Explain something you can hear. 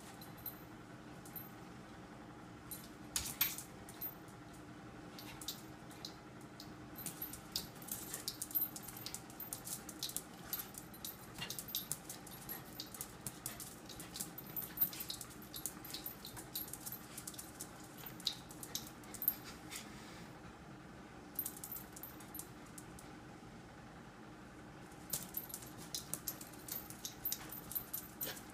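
Small dogs' claws click and scrabble on a tile floor.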